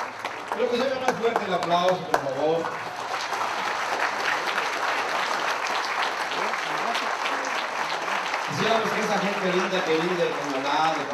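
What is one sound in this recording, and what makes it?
A crowd of people chatters in the background.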